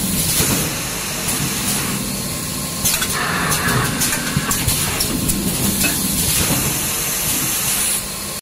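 A machine hums and whirs steadily.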